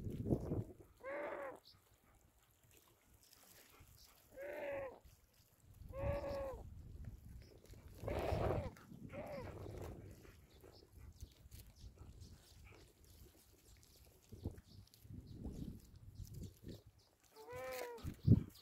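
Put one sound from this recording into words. A hawk gives shrill calls again and again.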